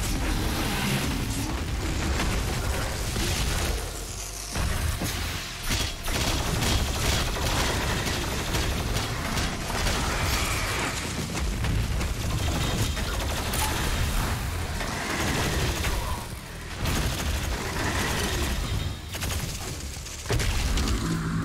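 Monsters roar and shriek.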